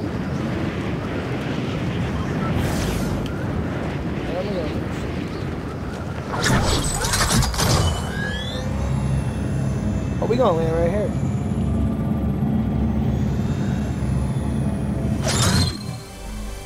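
Wind rushes steadily during a fall through the air.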